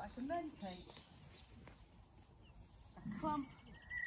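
Long grass rustles as someone walks through it.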